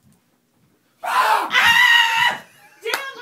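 A woman speaks loudly and with animation close by.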